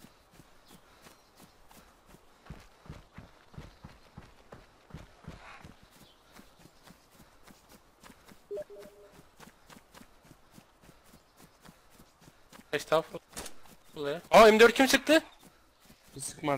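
Footsteps rustle steadily through grass and undergrowth.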